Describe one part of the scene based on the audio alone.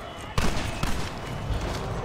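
Fists land hard blows in a brawl.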